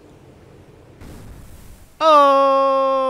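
Water splashes as a rocket plunges in.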